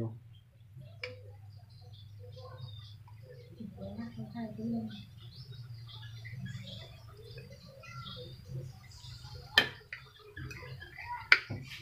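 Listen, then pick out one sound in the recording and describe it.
Metal tongs clink against a plate.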